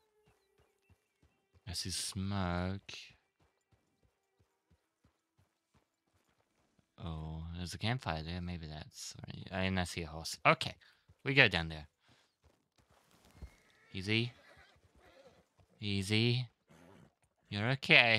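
A horse's hooves clop steadily on the ground at a walk.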